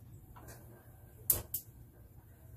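A gas grill igniter clicks.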